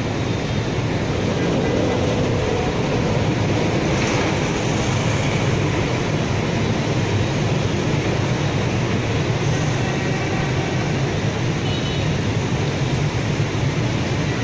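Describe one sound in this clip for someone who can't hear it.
Motorbike engines drone.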